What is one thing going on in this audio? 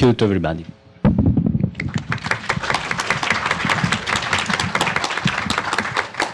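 An audience applauds in a hall.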